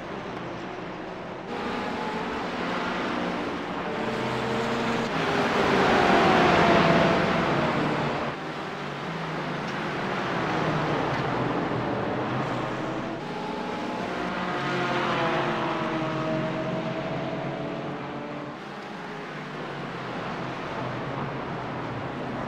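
Car engines rev up and down through gear changes.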